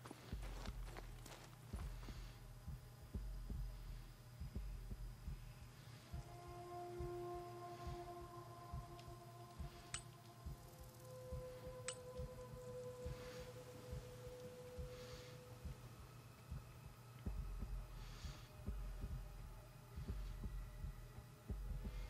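Metal clinks and clanks as a man works under a car's hood.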